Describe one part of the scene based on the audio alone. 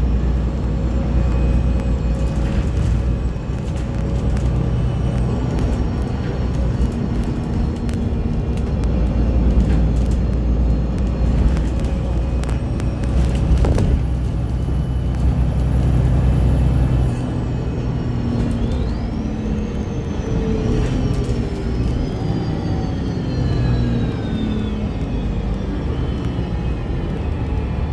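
A vehicle's engine rumbles steadily while driving.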